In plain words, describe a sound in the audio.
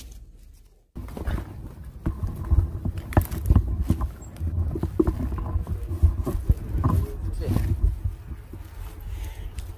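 Grass rustles as someone pushes through it.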